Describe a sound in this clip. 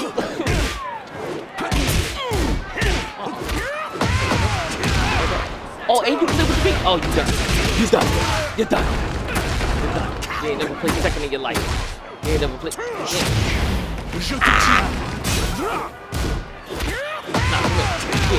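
Punches and kicks land with heavy thuds in a video game fight.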